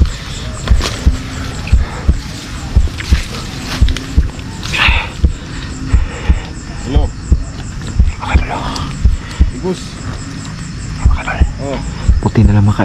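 Footsteps thud steadily on a dirt path.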